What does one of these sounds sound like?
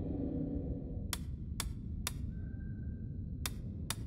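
A safe's combination dial clicks as it turns.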